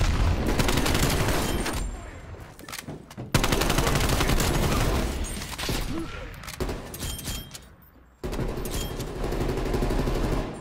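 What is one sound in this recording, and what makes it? An automatic gun fires in rapid bursts.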